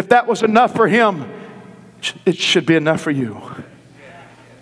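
A man preaches forcefully through a microphone in a large echoing hall.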